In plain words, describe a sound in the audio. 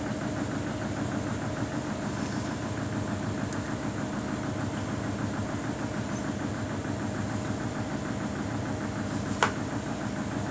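Water and wet laundry slosh inside a washing machine drum.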